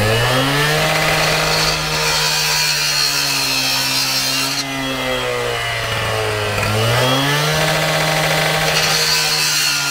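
A cut-off saw blade grinds through a plastic pipe.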